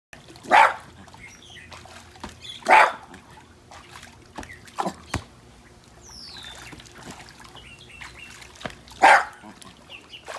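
Water splashes gently around a dog wading in a pool.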